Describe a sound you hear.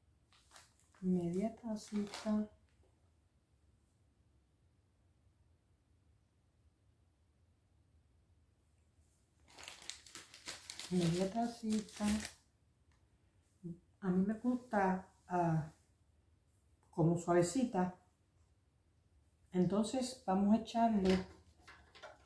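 An elderly woman speaks calmly nearby.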